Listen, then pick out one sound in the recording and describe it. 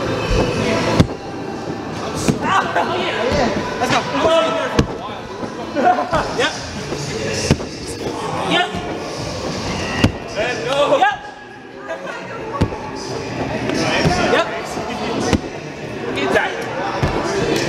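Bodies thud onto a padded floor after flips.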